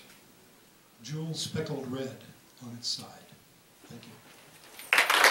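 A man speaks into a microphone in a room with some echo.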